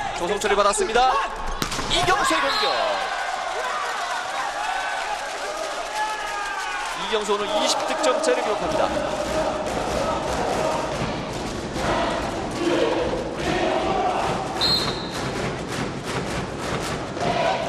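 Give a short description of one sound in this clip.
A volleyball is struck hard with a slap.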